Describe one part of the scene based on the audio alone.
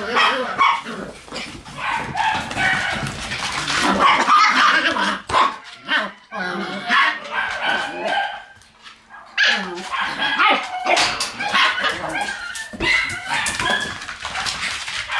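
Puppies yip and whine excitedly close by.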